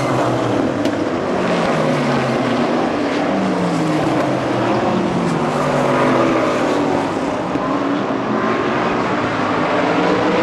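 Race car engines rise and fall in pitch as the cars speed up and slow down.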